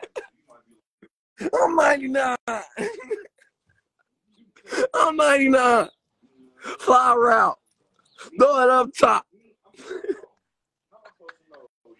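A man laughs over an online call.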